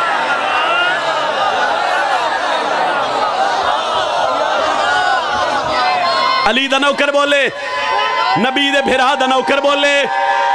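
A man chants loudly and with emotion through a microphone and loudspeakers.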